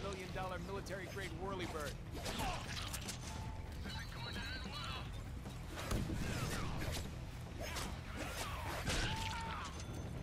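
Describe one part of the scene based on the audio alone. Blades slash and clang in a fight.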